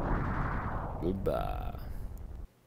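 A rising electronic tone sweeps up.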